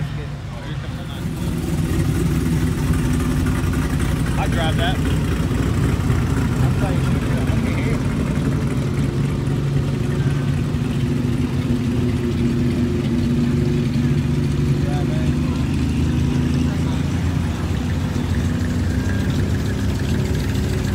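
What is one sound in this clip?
A big truck engine idles and rumbles loudly close by.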